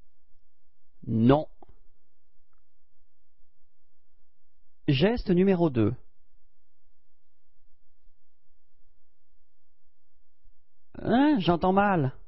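A young man speaks out with animation, close by.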